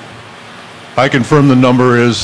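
An older man speaks calmly into a microphone over loudspeakers in a large hall.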